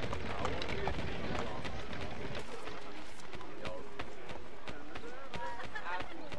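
Footsteps run quickly over paving stones.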